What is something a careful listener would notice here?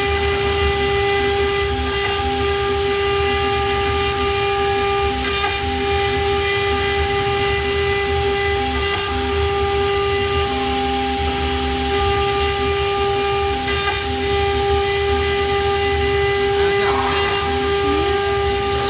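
A CNC router spindle whines at high speed.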